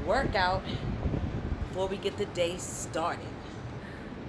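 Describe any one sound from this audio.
A young woman talks cheerfully, close to the microphone.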